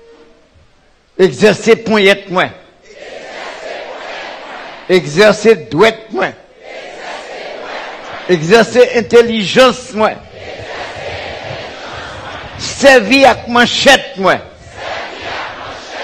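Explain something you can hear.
A large choir sings together.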